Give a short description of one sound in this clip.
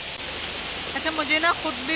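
A young woman speaks close to the microphone with animation.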